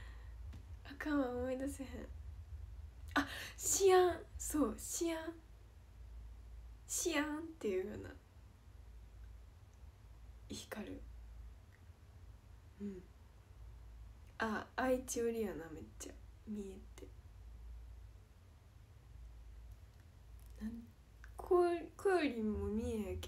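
A young woman talks cheerfully and close up, in short bursts with pauses.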